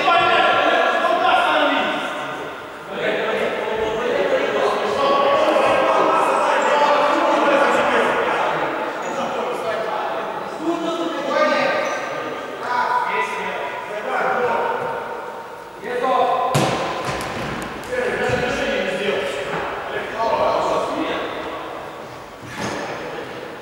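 A ball thuds as it is kicked on a hard indoor court.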